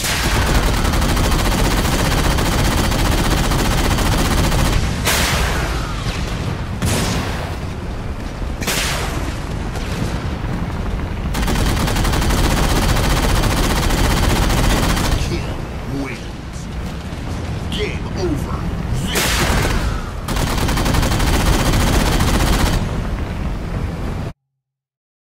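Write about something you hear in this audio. A hovering aircraft's engines roar and whine steadily.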